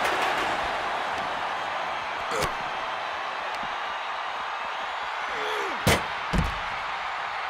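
A large crowd cheers loudly throughout.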